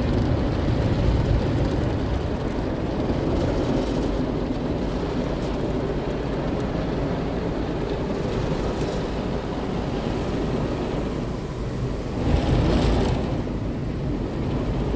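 Water sprays and splashes against a car's windscreen, heard from inside the car.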